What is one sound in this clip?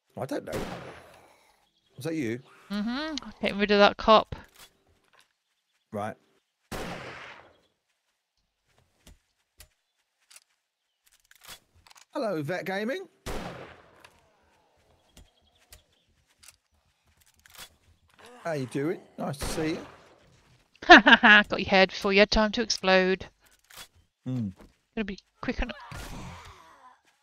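A gun fires single loud shots.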